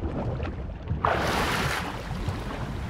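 A swimmer bursts up through the water's surface with a splash.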